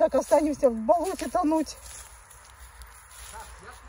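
Dry leaves rustle underfoot as a man walks.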